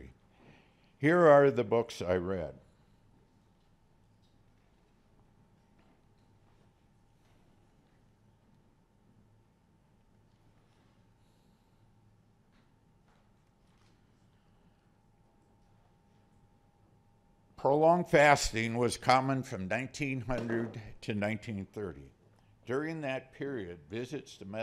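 A man speaks calmly into a microphone over loudspeakers.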